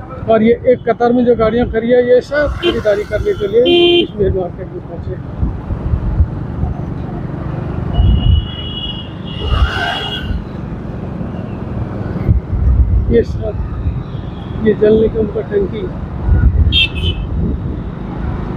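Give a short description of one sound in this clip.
A vehicle rolls along a road with a steady low rumble.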